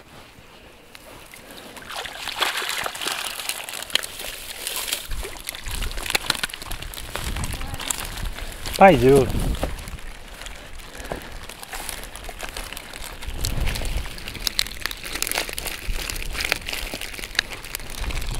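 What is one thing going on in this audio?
A fishing net rustles as it is handled.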